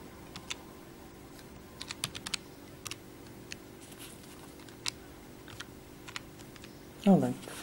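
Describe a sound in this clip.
Calculator buttons click as a finger presses them.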